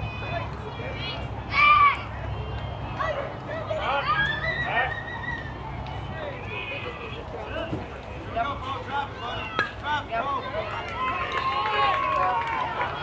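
Children shout and cheer outdoors across a ball field.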